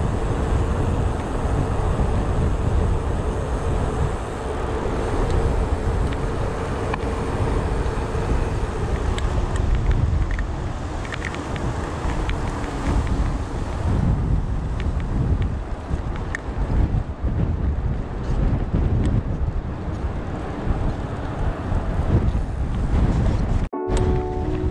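Bicycle tyres hum and rattle on a paved path.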